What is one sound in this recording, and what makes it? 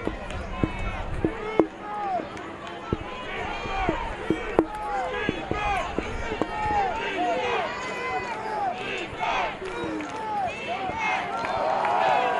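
A crowd murmurs and cheers in open-air stands.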